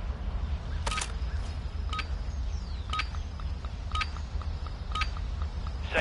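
A countdown timer beeps once a second.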